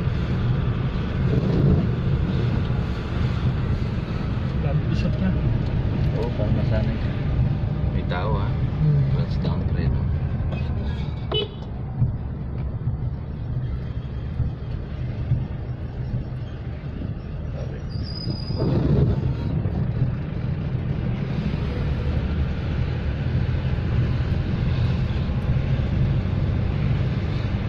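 Tyres rumble over a rough road.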